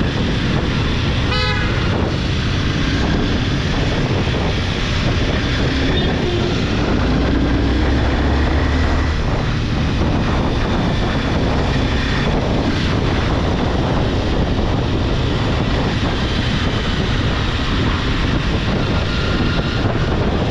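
Traffic passes nearby on a busy street.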